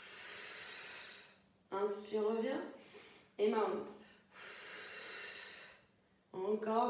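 A woman breathes out heavily.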